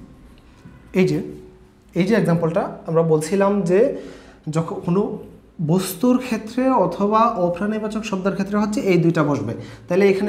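A young man speaks clearly and with animation into a close microphone.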